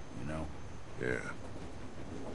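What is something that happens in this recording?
A man speaks briefly in a low voice.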